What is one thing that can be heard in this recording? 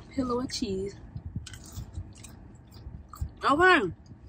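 A young woman chews food with soft smacking.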